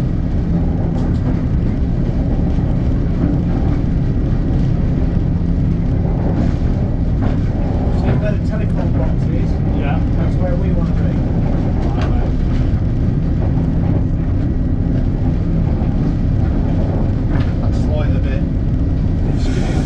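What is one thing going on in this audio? Wheels clank and click over rail joints.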